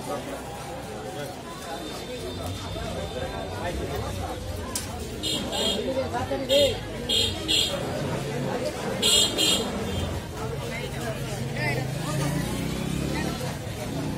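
A crowd of men talk all around, close by.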